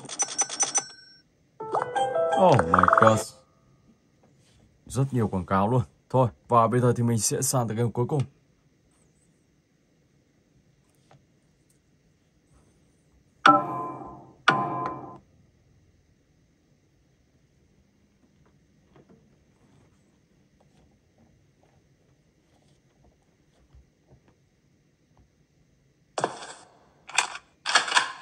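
A tablet game plays short bursts of music and sound effects.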